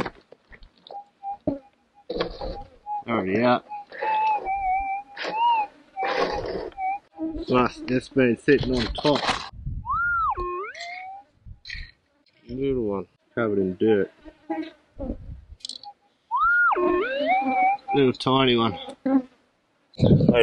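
A metal detector beeps and warbles, rising and falling in pitch.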